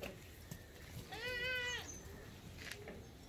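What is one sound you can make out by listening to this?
A goat bleats.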